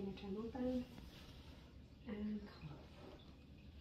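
A young woman speaks briefly and quietly, close by.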